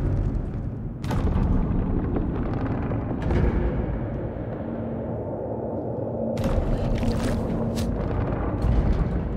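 Deep, rumbling machinery drones throughout.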